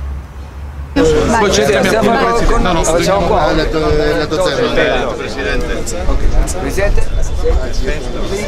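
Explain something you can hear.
A middle-aged man talks with other men outdoors.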